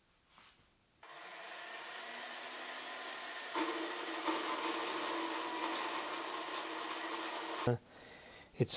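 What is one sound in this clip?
A band saw runs with a steady whine as it cuts metal.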